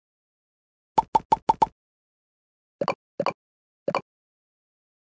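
Game chimes ping as balls are placed.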